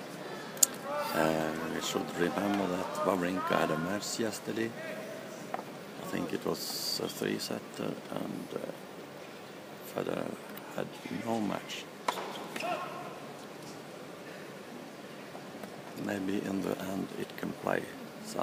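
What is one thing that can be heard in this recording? Spectators nearby chat quietly.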